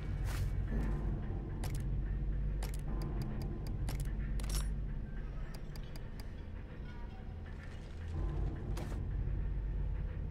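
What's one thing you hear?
Short menu clicks and beeps sound one after another.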